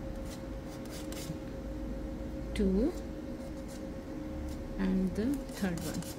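A small tool scrapes softly against soft clay.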